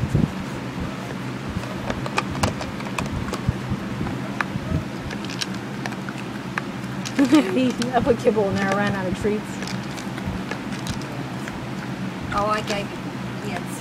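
A dog nudges and chews plastic toy pieces, with small clicks and knocks.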